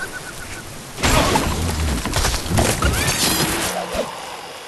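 Wooden blocks crash and clatter as they break apart.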